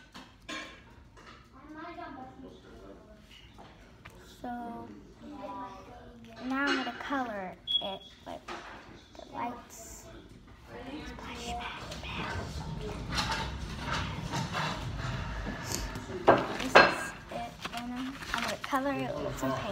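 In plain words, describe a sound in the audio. A young girl talks close by, calmly and with animation.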